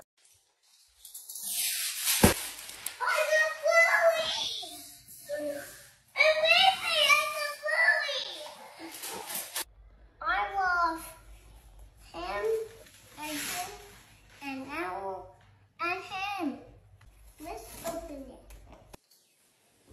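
A little girl shrieks and talks excitedly close by.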